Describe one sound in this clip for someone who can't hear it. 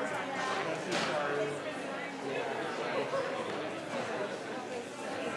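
A crowd of young people chatter nearby in a room.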